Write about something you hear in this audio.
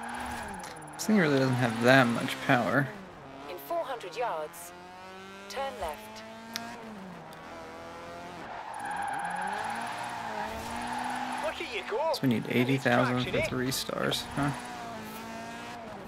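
Tyres squeal as a car drifts around corners.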